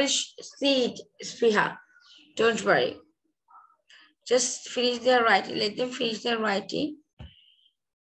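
A woman reads aloud clearly through an online call.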